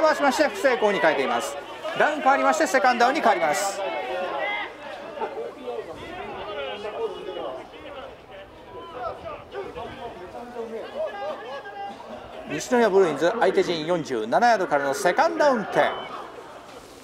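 Men on a sideline shout and cheer outdoors.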